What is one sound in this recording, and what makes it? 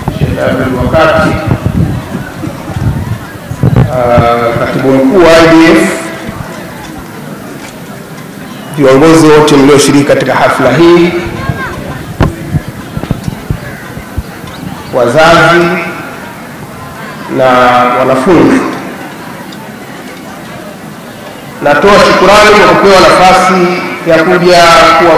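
A middle-aged man speaks into a microphone in bursts, heard through loudspeakers.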